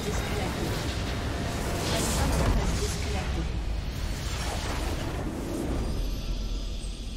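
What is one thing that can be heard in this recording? A structure explodes with a loud rumbling blast.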